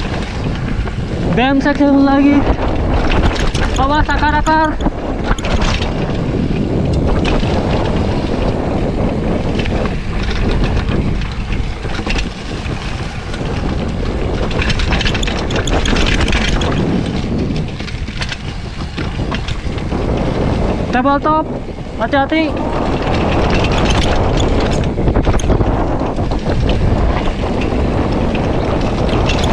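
Wind rushes loudly past throughout.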